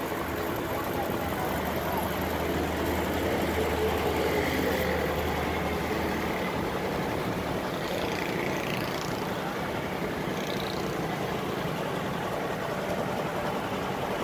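Street traffic rumbles steadily nearby.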